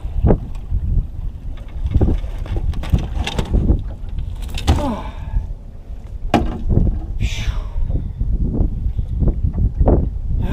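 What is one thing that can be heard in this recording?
Wind blows hard across an open microphone outdoors.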